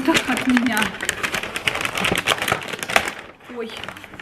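A paper bag rustles and crinkles close by.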